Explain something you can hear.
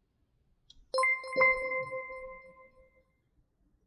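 A computer program plays a bright chime.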